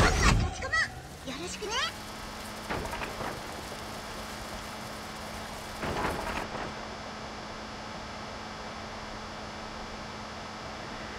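A machine's motor hums steadily.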